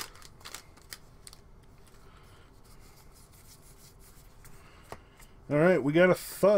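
Playing cards slide and flick as they are shuffled in hands.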